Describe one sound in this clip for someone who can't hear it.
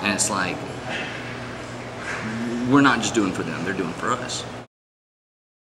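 A man speaks calmly and expressively, close up.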